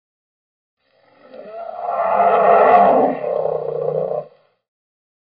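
A bear roars loudly.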